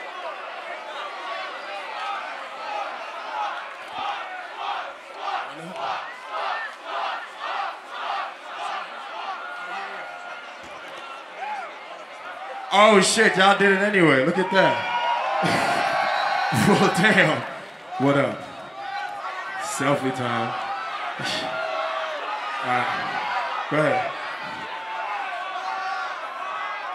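A large crowd cheers and chants rhythmically outdoors.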